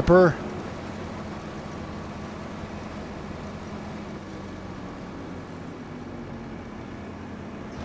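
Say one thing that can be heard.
Grain pours into a trailer with a soft rushing hiss.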